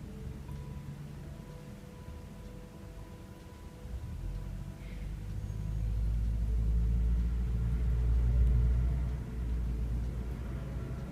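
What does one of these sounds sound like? Hands softly rub and knead bare skin.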